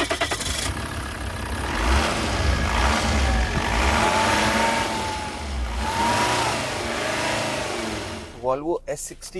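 A car engine idles and revs up close by.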